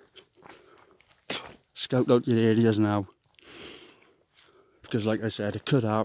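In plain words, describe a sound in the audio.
Footsteps crunch softly over the forest floor.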